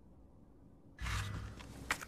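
A metal lid creaks and thuds open.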